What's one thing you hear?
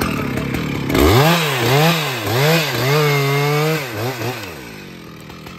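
A chainsaw engine revs up and down in loud bursts.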